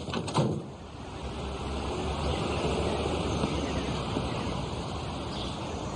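A car drives slowly over a wet road.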